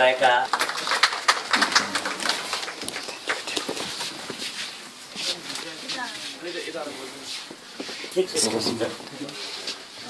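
Fabric rustles and brushes close to the microphone.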